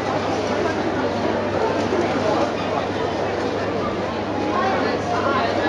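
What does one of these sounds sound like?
A crowd chatters nearby, with many voices overlapping.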